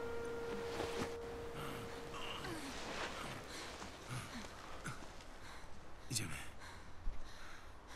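Leaves and branches rustle as people climb through brush.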